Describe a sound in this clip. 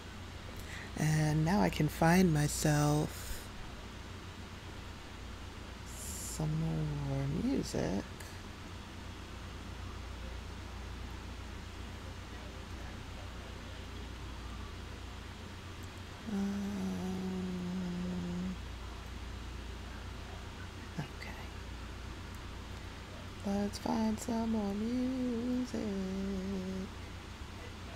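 A young woman talks casually into a close microphone, in short bursts with pauses.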